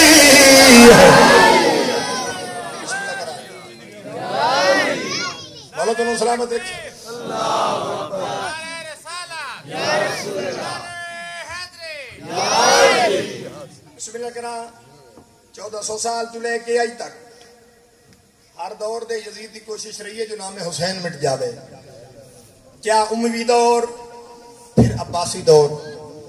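A man sings a lament loudly into a microphone, heard through loudspeakers in an echoing hall.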